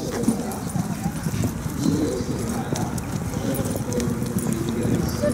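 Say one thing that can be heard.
Horses' hooves thud softly as horses walk past.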